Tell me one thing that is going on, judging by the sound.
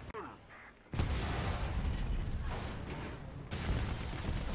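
An explosion booms and rumbles loudly.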